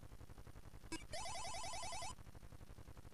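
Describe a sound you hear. A retro video game plays a short harsh electronic buzz.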